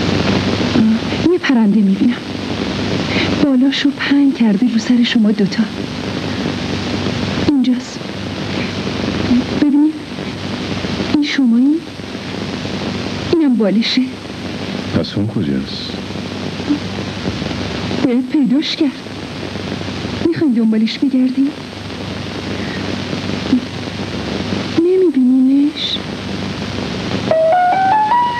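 A young woman sings with feeling.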